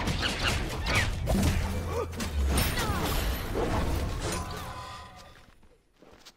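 Game effects whoosh and clash.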